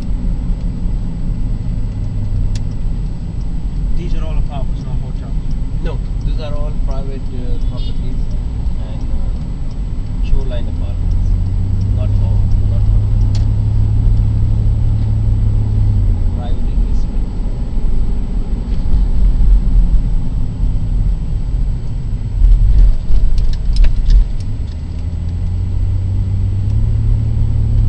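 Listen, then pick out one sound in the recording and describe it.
Tyres rumble low on the road.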